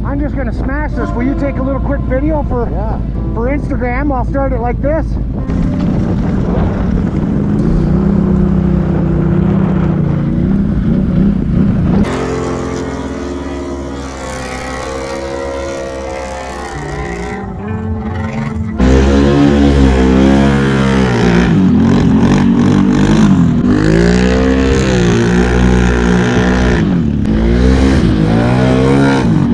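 Engines rev loudly, rising and falling in pitch.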